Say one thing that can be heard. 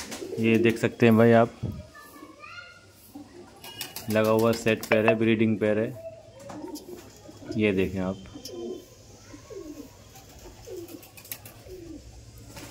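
Pigeons coo close by.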